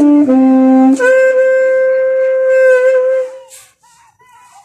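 A saxophone plays a few long held notes close by outdoors.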